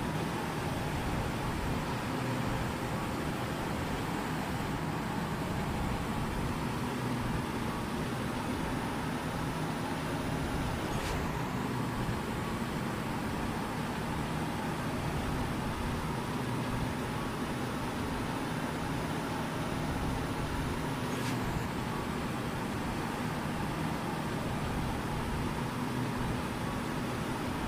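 A truck engine hums steadily as it drives along a road.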